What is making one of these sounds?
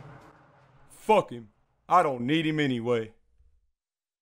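A man speaks in a flat, drawling voice.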